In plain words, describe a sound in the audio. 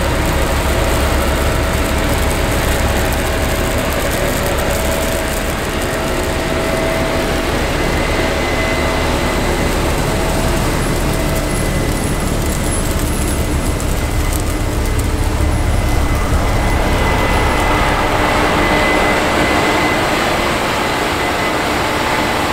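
Tracks clatter and crunch over stubble.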